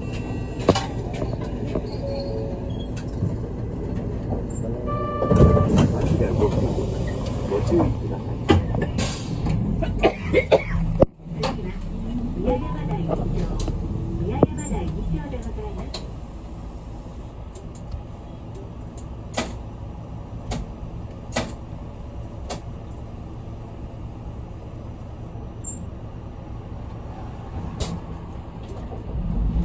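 A bus engine rumbles steadily from inside the bus, louder at first and then quieter as it idles.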